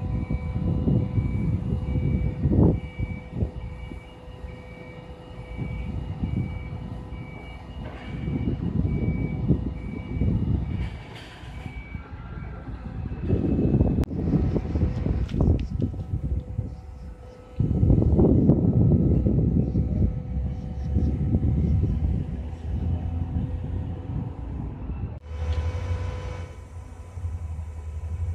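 Wind buffets the microphone outdoors in gusts.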